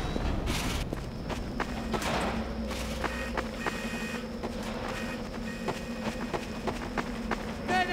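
Footsteps patter steadily on a hard floor.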